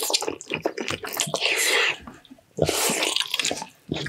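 A man chews and crunches food noisily up close.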